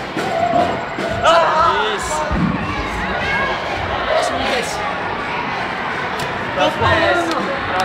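Arcade game machines play loud electronic music and jingles all around.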